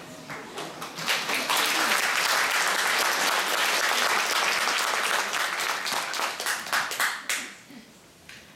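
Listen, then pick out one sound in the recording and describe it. An audience applauds and cheers loudly in a large hall.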